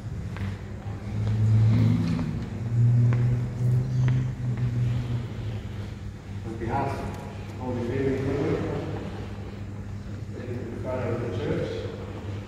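A man speaks calmly through a loudspeaker in an echoing hall.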